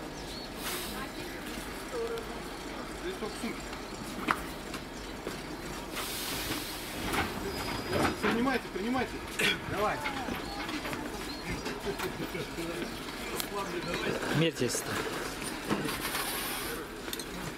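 A crowd of men and women talk nearby outdoors.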